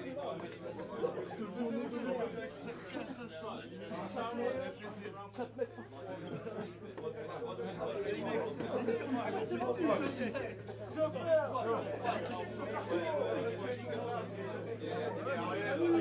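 A band plays electric guitars loudly in an echoing room.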